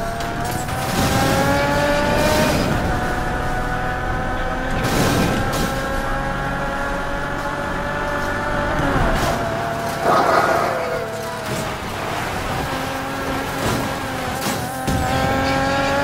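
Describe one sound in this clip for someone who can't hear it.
Debris clatters and smashes against a car.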